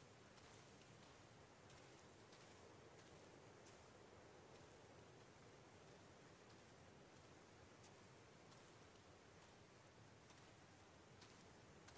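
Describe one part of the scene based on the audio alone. A man's footsteps swish through tall grass.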